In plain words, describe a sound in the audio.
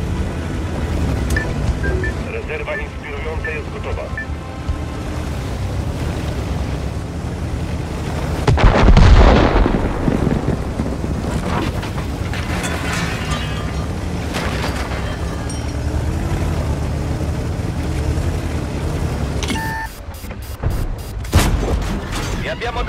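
A tank engine rumbles and clanks steadily as the tank drives.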